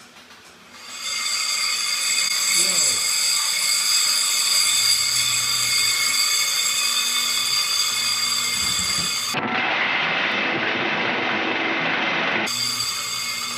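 Electrical machinery buzzes steadily.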